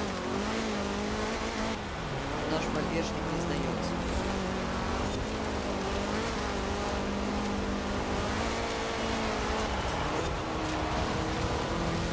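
A car engine revs hard and shifts gears as the car speeds up.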